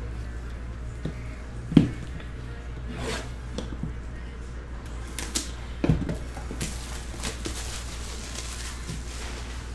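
Hands tap and rub on a cardboard box.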